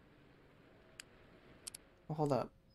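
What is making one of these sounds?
A soft interface click sounds as a menu opens.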